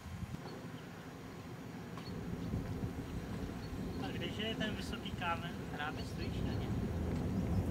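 Footsteps clank on a metal footbridge.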